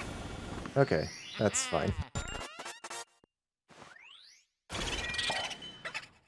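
A video game's sound effects chime and burst brightly.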